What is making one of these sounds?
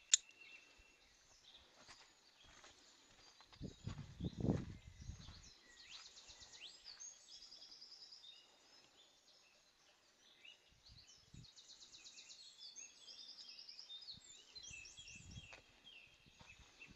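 A river flows gently nearby.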